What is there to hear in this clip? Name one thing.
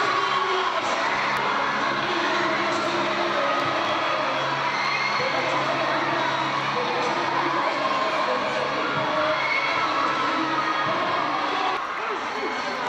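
A crowd of children chatters and cheers in a large echoing hall.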